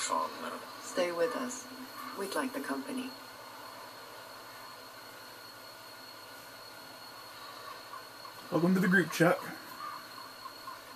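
A woman speaks softly, heard through a television speaker.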